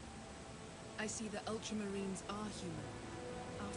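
A woman speaks softly and calmly.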